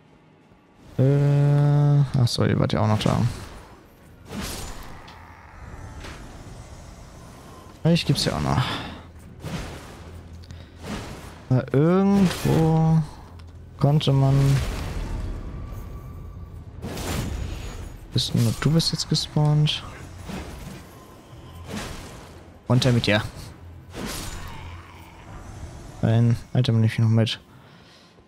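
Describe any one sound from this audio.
Magic blasts whoosh and shimmer with ringing tones.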